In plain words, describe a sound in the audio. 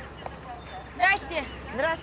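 A man calls out nearby.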